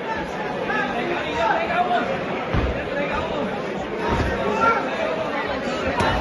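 Boxers' gloves thud against each other's bodies.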